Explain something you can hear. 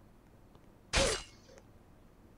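A sudden sharp slashing burst sounds once.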